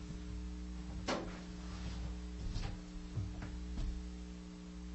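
Footsteps thud on a hard floor as a man walks away.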